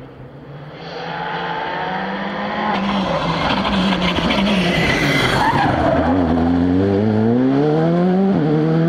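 A rally car engine screams through its gears up close.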